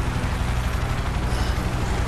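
An aircraft engine roars overhead.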